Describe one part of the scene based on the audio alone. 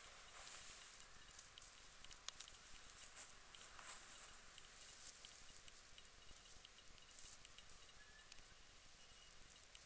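Grass rustles softly as a hand brushes through it.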